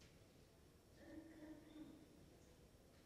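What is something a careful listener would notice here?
A woman speaks briefly into a microphone in a large echoing room.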